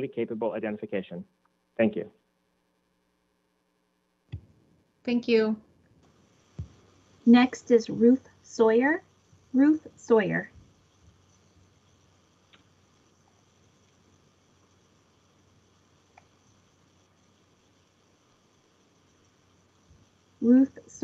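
A woman speaks calmly over an online call, in short phrases with pauses.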